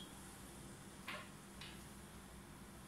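Playing cards rustle and tap as they are handled.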